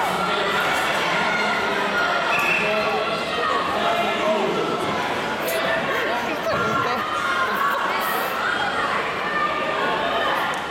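Bare feet thump and shuffle on mats.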